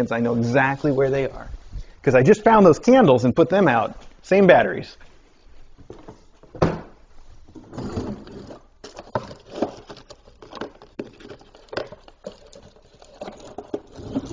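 Puppies shuffle and scratch about.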